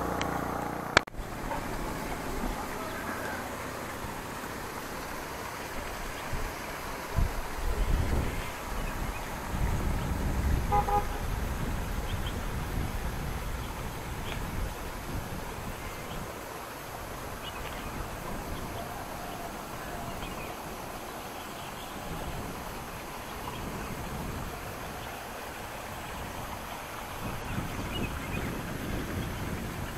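Wind gusts buffet the microphone outdoors.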